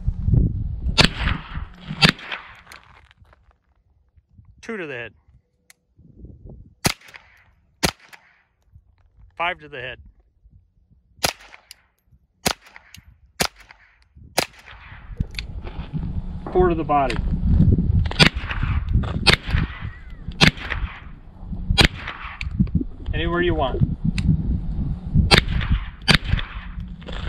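A rifle fires sharp single shots outdoors, one every second or so.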